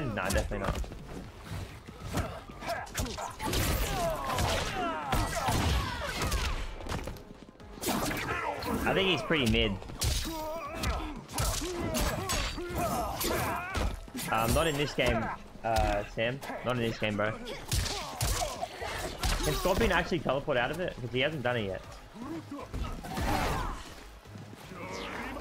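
Punches and kicks thud in a video game fight.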